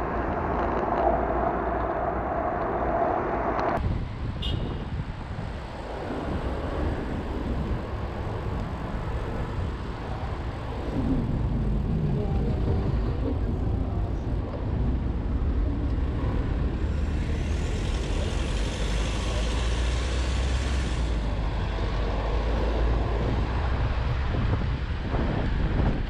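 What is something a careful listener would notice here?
Car traffic rumbles on a city road.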